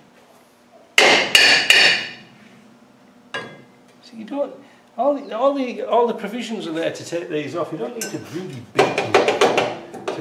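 Metal clanks as a brake drum is worked by hand.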